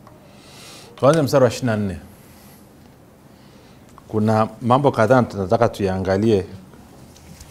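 A man speaks loudly and with expression in short bursts, in a room with a slight echo.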